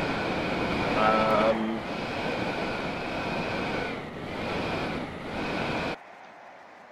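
Jet thrusters roar with a rushing hiss, dipping briefly, then cut off.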